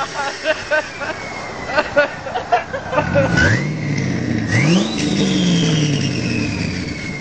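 Tyres squeal as they spin in a burnout.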